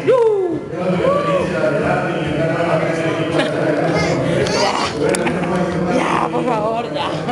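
A crowd chatters and cheers loudly around.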